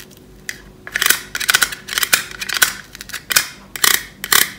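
A plastic toy knife taps against plastic toy fries.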